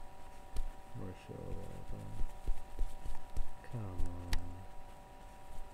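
A young man speaks quietly close to a microphone.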